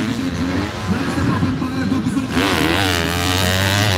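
A motocross bike engine revs hard as it climbs over a dirt jump.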